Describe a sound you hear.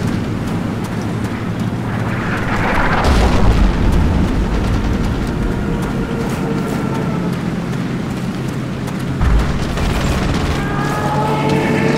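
Footsteps crunch steadily on dry, grassy ground.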